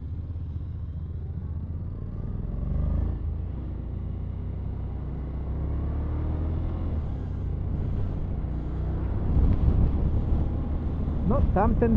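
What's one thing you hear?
Wind rushes past while riding at speed.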